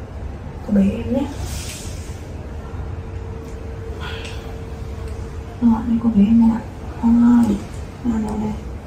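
A young woman speaks softly and closely.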